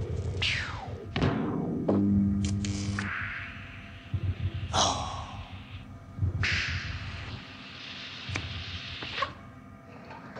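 Air hisses loudly from a machine in bursts.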